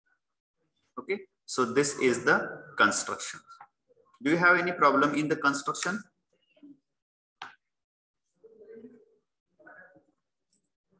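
A man speaks calmly through a microphone, as if explaining, in short bursts with pauses.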